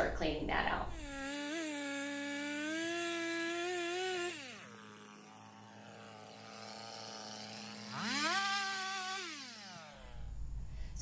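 A chainsaw engine runs and revs up.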